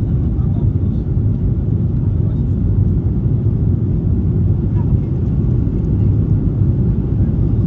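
Jet engines roar steadily in a low, loud drone inside an airliner cabin.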